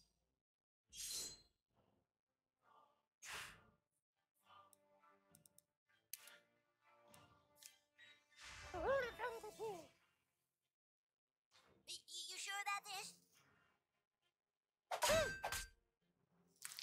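Weapons strike with sharp whooshing hits.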